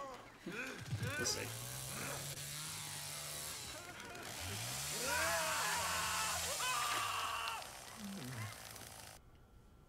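A chainsaw engine revs up and down loudly.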